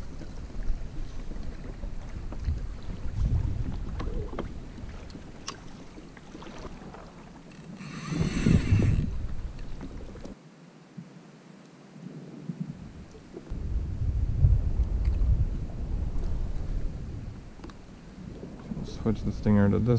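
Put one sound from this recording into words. Wind gusts and rumbles outdoors over open water.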